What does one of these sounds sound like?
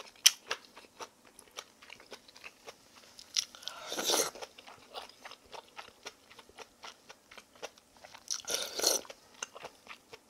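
A woman chews food with wet smacking sounds close by.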